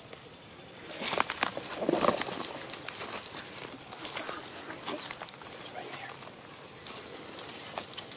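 Palm fronds rustle and scrape as a man pushes through them.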